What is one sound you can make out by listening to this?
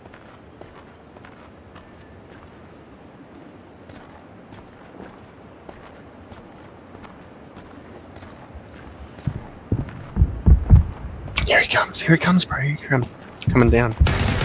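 Footsteps thud on a floor and up wooden stairs.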